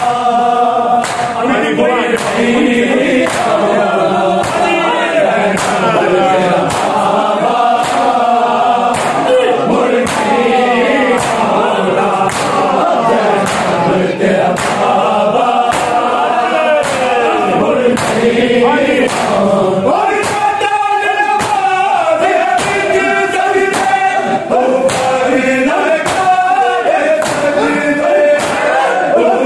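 Men beat their bare chests in a steady rhythm of heavy slaps.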